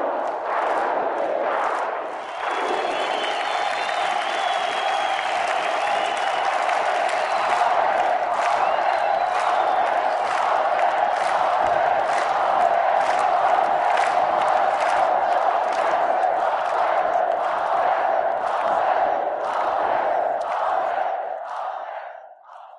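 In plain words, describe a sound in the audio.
A large crowd chants and cheers loudly.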